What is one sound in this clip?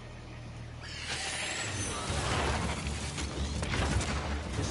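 A flying machine roars loudly overhead.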